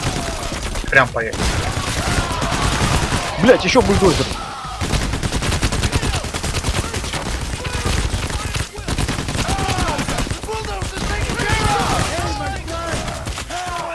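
Rifle gunfire rattles in rapid bursts.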